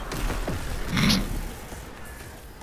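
A burst of energy explodes.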